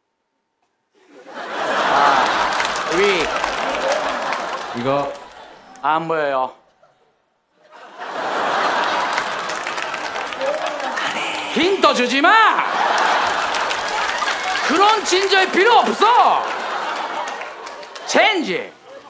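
An audience laughs and cheers loudly.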